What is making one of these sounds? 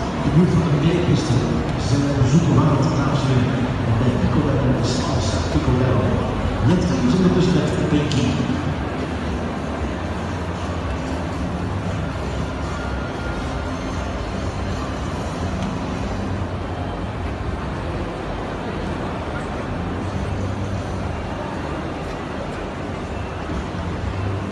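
A crowd murmurs in a large echoing indoor arena.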